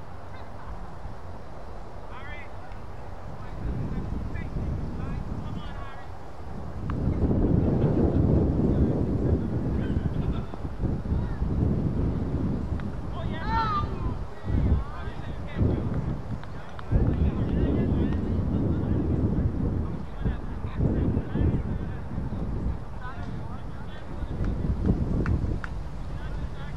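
Wind blows and rumbles across an open field.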